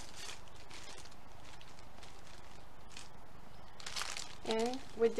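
Plastic cellophane crinkles and rustles close by.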